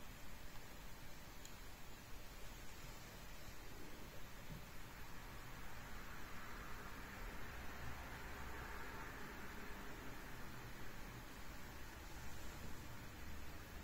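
A crochet hook softly scrapes and clicks through yarn.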